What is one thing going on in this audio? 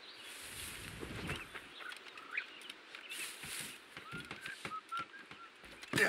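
Footsteps rustle through tall plants and grass.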